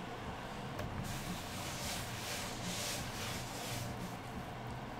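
A cloth wipes across a wooden board.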